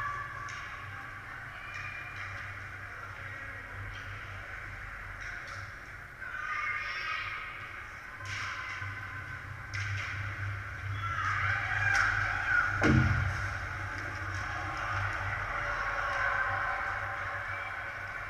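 Hockey sticks click against the puck and each other.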